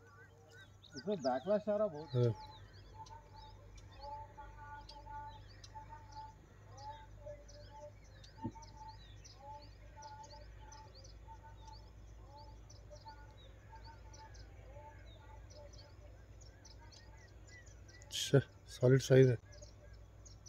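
A man shouts outdoors nearby.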